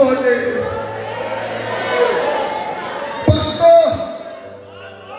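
A man speaks with animation through a microphone and loudspeakers, echoing in a large open space.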